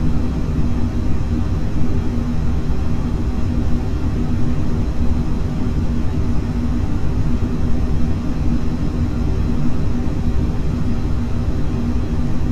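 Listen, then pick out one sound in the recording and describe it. A jet engine roars steadily from inside the cockpit.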